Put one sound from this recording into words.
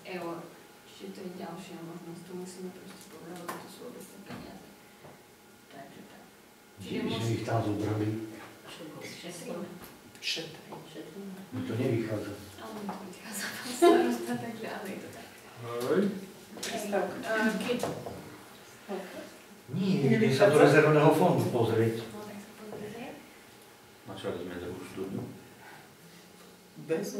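A middle-aged man speaks calmly and steadily, close by.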